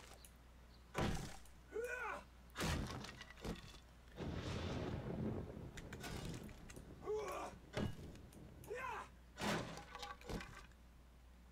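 Fists thump and crack against wooden crates.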